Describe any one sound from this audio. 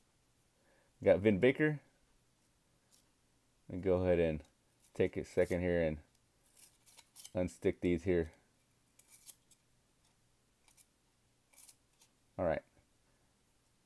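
Trading cards slide and tap against each other as they are shuffled.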